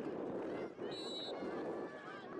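A referee blows a short, sharp whistle.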